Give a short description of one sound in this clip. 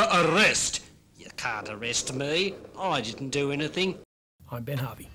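A puppet character talks in a cartoonish voice.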